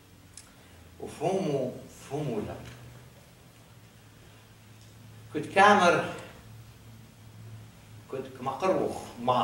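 An elderly man speaks slowly and with pauses through a microphone in a large room.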